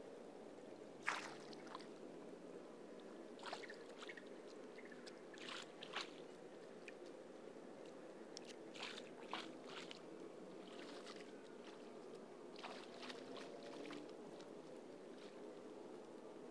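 Water splashes as a man wades through a shallow stream.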